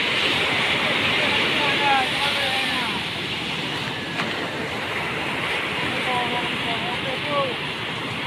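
Waves wash steadily onto a beach outdoors.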